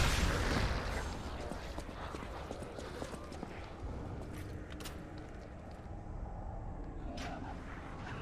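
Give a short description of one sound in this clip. Footsteps echo on a stone floor.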